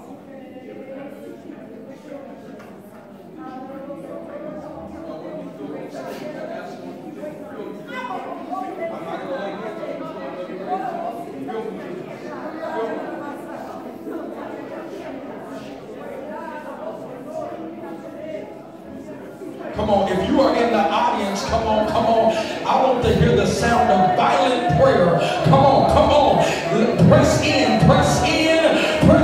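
A man preaches with animation over a loudspeaker in an echoing hall.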